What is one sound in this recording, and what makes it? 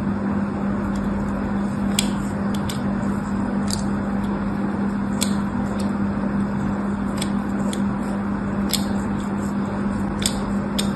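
A needle scrapes soap with sharp little clicks.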